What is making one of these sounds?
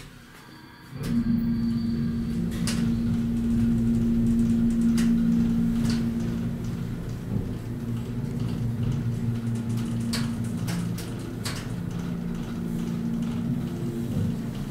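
An elevator motor hums steadily as the car travels.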